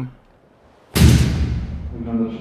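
A door bursts open with a loud bang.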